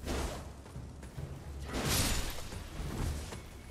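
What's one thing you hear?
Armour clanks as a figure rolls through grass.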